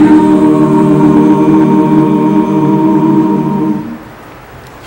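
A choir sings a held chord in an echoing hall and then stops.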